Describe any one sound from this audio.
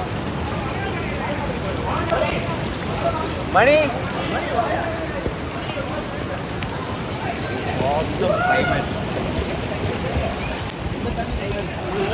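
Rain patters steadily on water outdoors.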